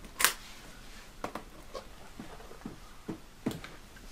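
Metal case latches click and the lid opens.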